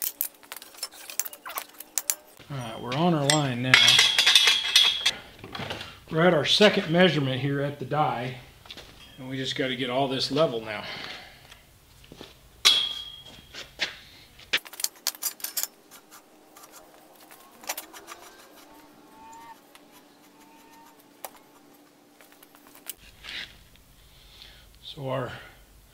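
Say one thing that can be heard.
Metal clanks and clicks as a pipe is clamped in a bender.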